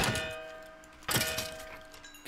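A sword strikes a creature with sharp hits.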